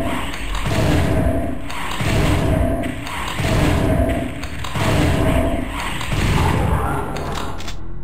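A shotgun fires in loud, booming blasts about once a second.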